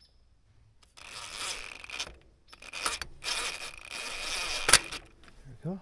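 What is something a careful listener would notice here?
A cordless drill whirs.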